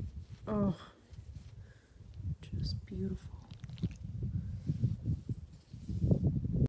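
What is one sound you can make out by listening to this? A hand rubs and scratches a dog's fur close by.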